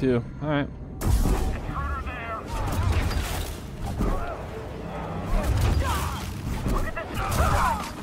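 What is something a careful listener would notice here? Energy blades hum and clash in a fight.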